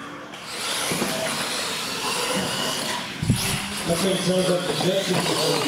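Electric motors of toy cars whine at high speed.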